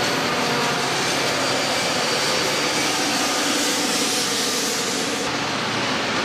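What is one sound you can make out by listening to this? A diesel locomotive engine rumbles and drones close by.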